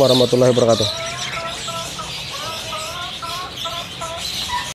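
Caged birds chirp and whistle close by.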